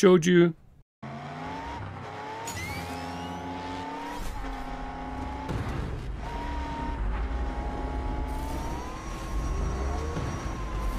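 A toy race car's engine hums and whines steadily as it speeds along a track.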